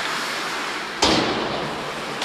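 A puck smacks loudly against the boards.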